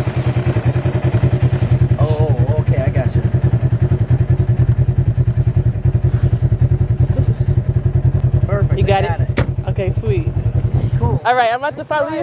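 An off-road vehicle engine idles with a steady low rumble.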